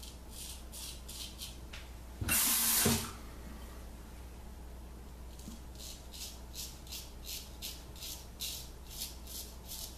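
A razor scrapes through stubble in short, rasping strokes.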